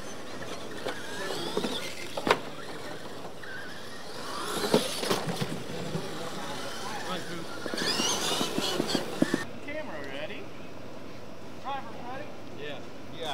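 Small electric motors whine as toy trucks race over dirt.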